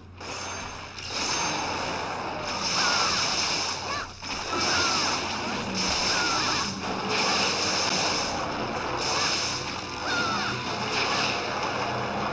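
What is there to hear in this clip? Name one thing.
Blades slash and clash in a fast fight, with bursts of sharp impact effects.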